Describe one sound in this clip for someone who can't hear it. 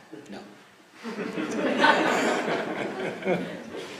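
An older man laughs into a microphone.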